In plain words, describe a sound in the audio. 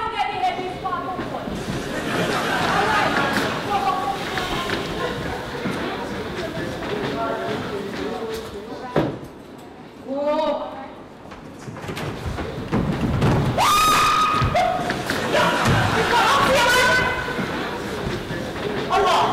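A man speaks with animation in a hall.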